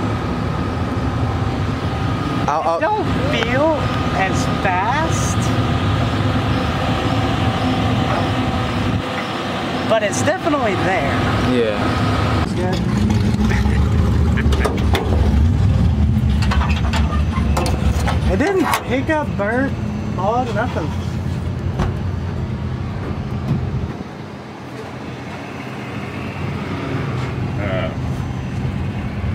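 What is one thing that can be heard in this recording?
An engine idles with a steady low rumble.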